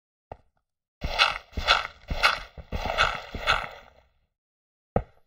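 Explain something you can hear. Dirt crunches rapidly as it is dug out with a shovel.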